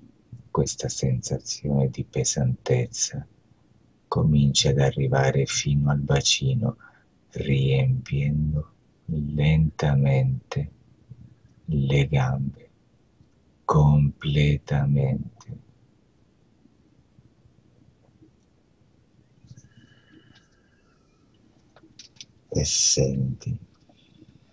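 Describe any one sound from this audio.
A man speaks calmly and slowly over an online call, with pauses.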